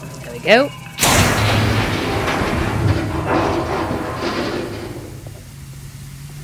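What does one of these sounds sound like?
Steam hisses loudly from a boiler.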